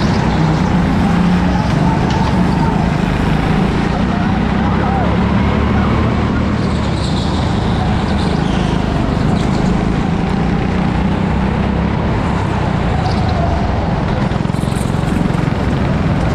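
Go-kart engines buzz and whine loudly close by.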